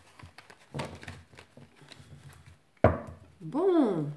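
Playing cards riffle and slide as they are shuffled by hand.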